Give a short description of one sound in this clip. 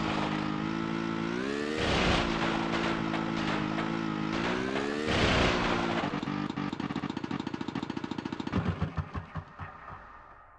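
A snowmobile engine drones and revs up and down.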